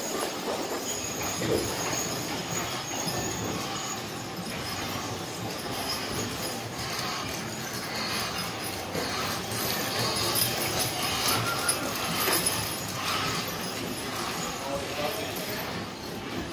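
Wagon wheels roll over sand.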